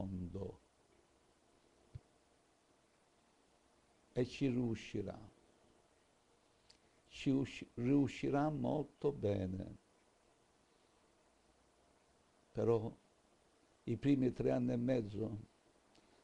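An elderly man speaks calmly into a microphone close by, with pauses.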